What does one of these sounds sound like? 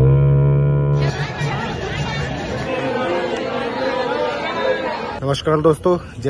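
A crowd murmurs and shouts outdoors.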